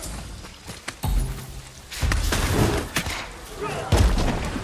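Heavy thuds and impacts boom.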